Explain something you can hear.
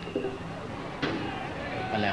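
A pitched ball smacks into a catcher's mitt.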